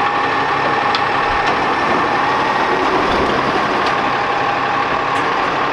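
A truck's mechanical arm whirs as it lifts a bin.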